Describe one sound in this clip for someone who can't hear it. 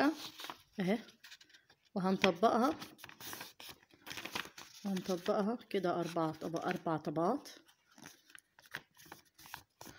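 A sheet of paper rustles and crinkles as it is handled.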